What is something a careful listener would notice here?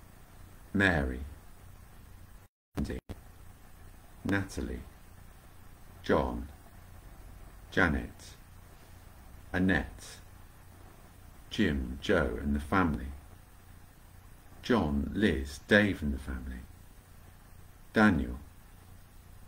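A man speaks slowly and calmly in short phrases, close to a microphone.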